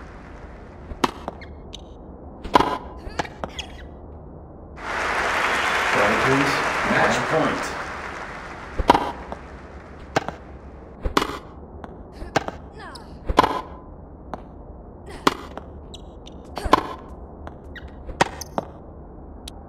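Tennis balls are struck with sharp pops, back and forth.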